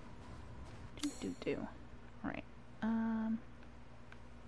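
A short game menu chime sounds.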